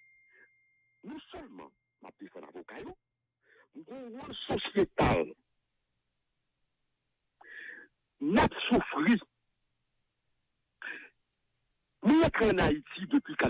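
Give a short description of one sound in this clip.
A man speaks with animation close to a microphone, in bursts with pauses.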